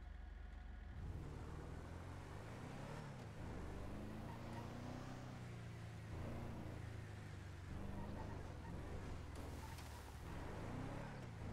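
A pickup truck engine revs as the truck accelerates along a road.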